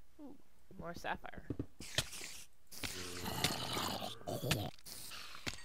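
A sword strikes a zombie with sharp thuds.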